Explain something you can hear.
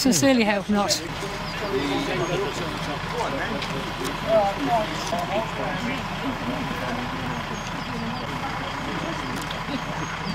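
A truck engine rumbles steadily outdoors.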